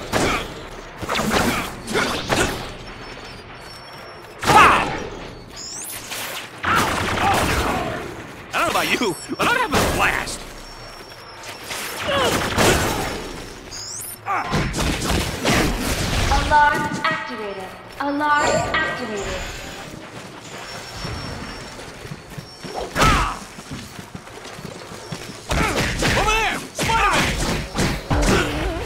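Punches and kicks land with heavy thuds in a fight.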